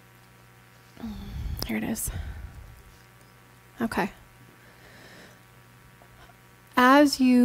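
A woman speaks through a microphone in a room.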